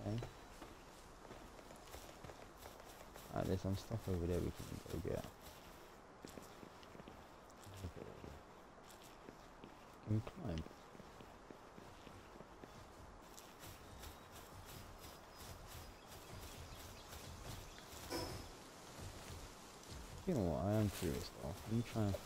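Footsteps pad over grass and rock.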